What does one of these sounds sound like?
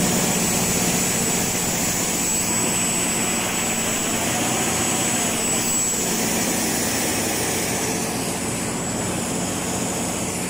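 A large diesel generator engine hums loudly and steadily nearby.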